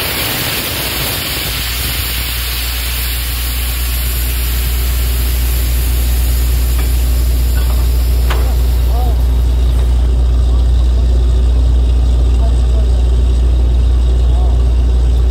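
Water gushes and splashes from a borehole.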